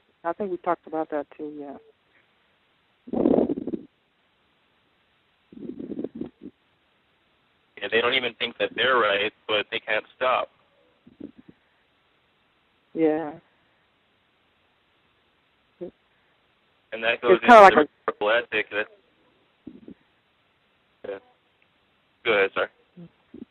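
A middle-aged woman speaks calmly through a microphone, pausing often.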